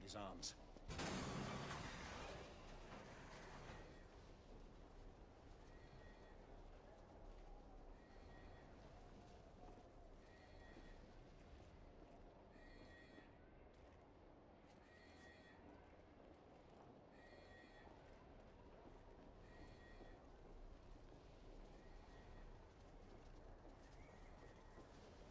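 Footsteps thud on a metal walkway.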